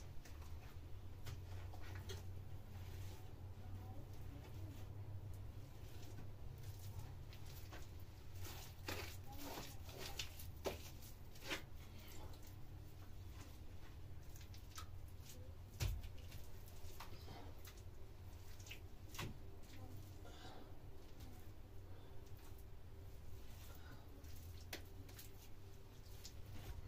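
A trowel scrapes wet plaster across a wall.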